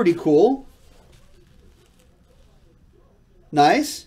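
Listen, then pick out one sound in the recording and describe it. Paper rustles as a sheet is handled.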